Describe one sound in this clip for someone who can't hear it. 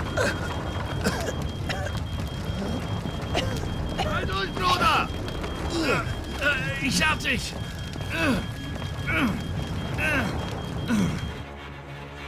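A man speaks in a strained, urgent voice close by.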